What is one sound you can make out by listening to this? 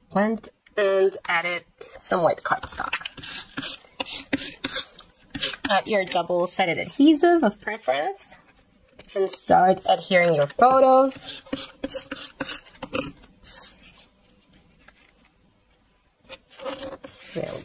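Paper rustles and slides against paper.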